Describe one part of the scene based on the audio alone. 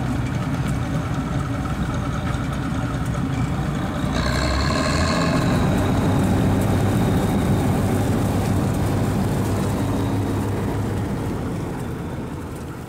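A combine harvester's header clatters as it cuts through dry stalks.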